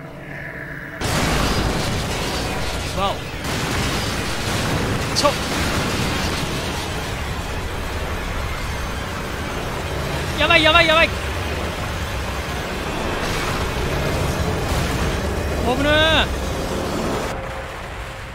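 A heavy machine with spinning blades roars loudly.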